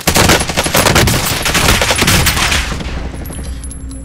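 Loud gunfire crackles and booms.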